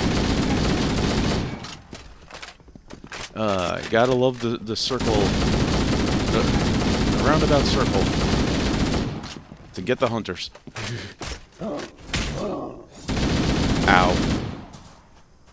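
Rapid gunfire blasts loudly in bursts.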